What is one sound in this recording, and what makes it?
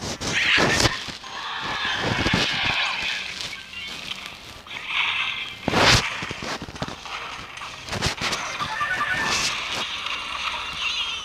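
Game sound effects clash and chime as troops fight and spells hit.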